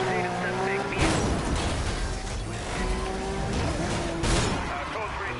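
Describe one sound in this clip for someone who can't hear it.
A car crashes into another car with a loud metallic bang.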